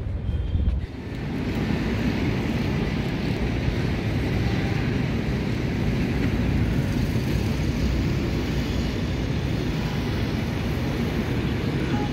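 Traffic hums in the distance outdoors.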